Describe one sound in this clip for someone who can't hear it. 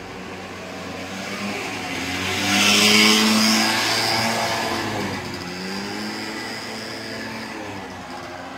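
A scooter engine buzzes past close by and fades away.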